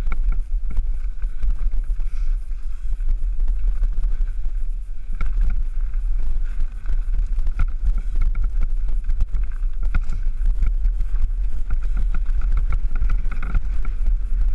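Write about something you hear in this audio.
Bicycle tyres rattle and bump over a rough dirt trail.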